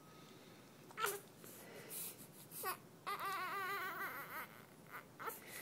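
A newborn baby cries in short, wavering wails close by.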